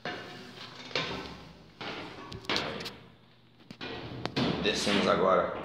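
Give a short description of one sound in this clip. Footsteps clank on metal stair treads.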